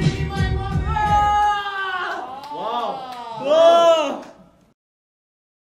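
A young man sings loudly into a microphone.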